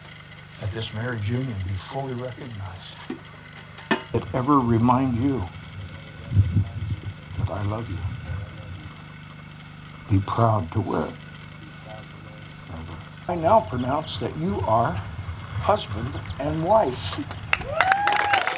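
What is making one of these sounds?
An elderly man speaks calmly and steadily, as if reading out.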